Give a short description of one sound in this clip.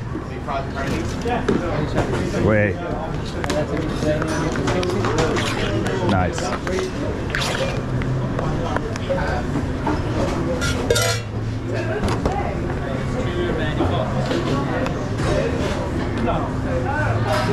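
Dishes and utensils clatter in a busy kitchen.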